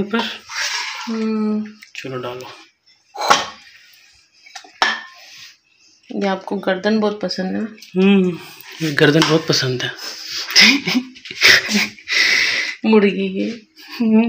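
A ladle scrapes and stirs inside a metal pot.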